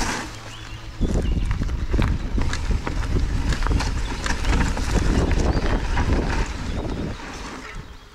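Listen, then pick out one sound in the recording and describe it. A bicycle frame and chain rattle over bumps.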